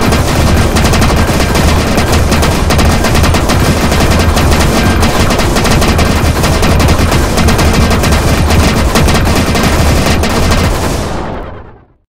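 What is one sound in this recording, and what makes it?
Electronic blasts and chimes from a video game ring out rapidly.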